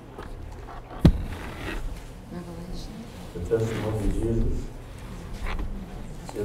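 An elderly man speaks calmly and cheerfully into a microphone.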